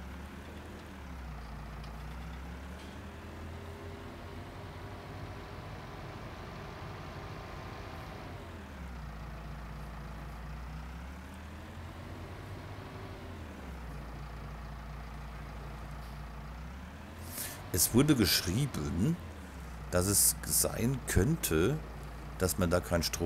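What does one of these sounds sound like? A tractor engine hums steadily from inside the cab, its pitch rising and falling as it speeds up and slows down.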